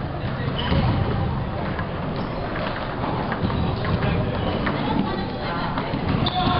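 Ping-pong balls click back and forth on paddles and tables in a large echoing hall.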